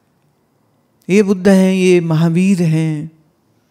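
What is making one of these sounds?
A woman sings a sustained melodic phrase into a microphone close by.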